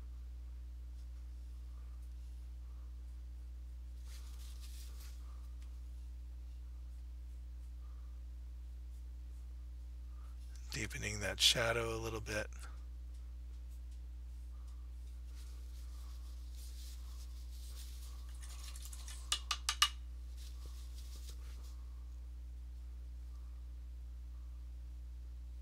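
A brush scrapes softly across canvas.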